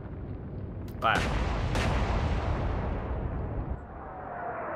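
Heavy naval guns fire with loud booming blasts.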